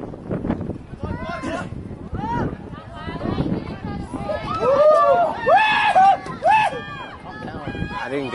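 Spectators close by shout and cheer excitedly.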